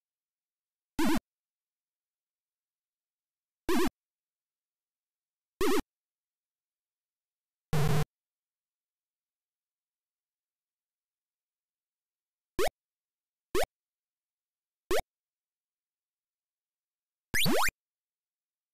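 Short electronic game sound effects chirp and zap now and then, each rising in pitch.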